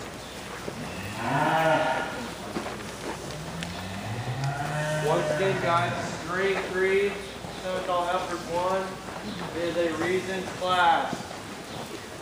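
A man talks nearby in a large echoing hall.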